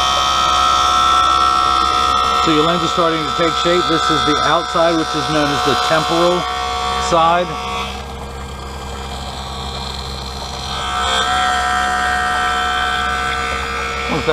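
A machine hums and whines steadily.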